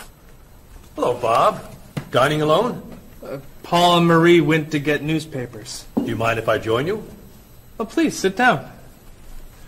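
A man speaks calmly and warmly.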